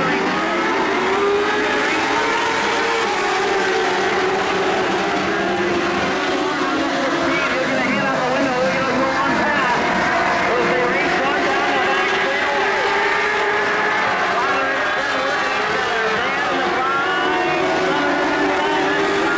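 Race car engines rise and fall in pitch as the cars pass close by.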